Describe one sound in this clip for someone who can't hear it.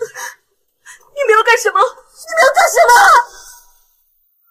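A young woman speaks in a frightened, tearful voice.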